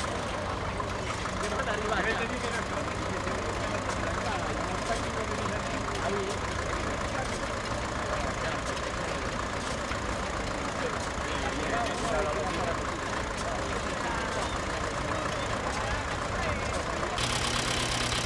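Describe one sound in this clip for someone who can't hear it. An old threshing machine rattles and clatters steadily outdoors.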